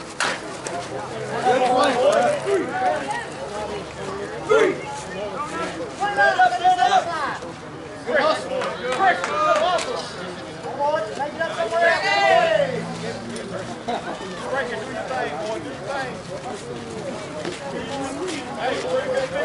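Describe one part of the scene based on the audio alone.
Men call out and talk loudly outdoors across an open field.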